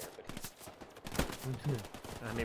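A machine gun fires a short burst nearby.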